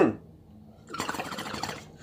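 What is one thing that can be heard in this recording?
Water bubbles in a bong.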